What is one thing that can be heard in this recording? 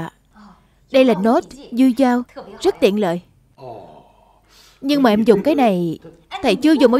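A young woman answers brightly nearby.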